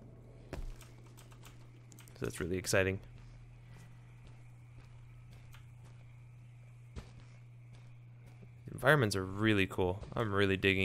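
Footsteps pad softly over grass.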